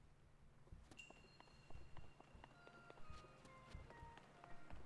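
A bright chiming melody rings out, stepping down note by note.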